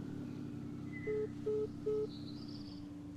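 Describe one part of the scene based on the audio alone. A phone call ends with three short electronic beeps.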